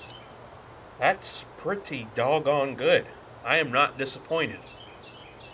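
A middle-aged man speaks calmly nearby, outdoors.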